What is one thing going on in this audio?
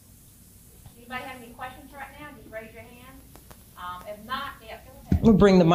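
A woman speaks into a microphone in a large room.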